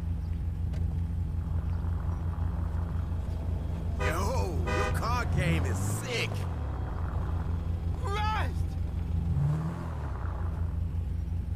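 A sports car engine rumbles low and steady, then revs as the car pulls away.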